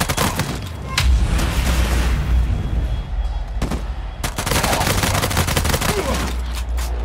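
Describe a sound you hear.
A deep explosion rumbles.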